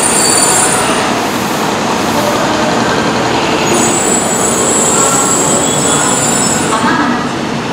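Train brakes squeal with a high whine.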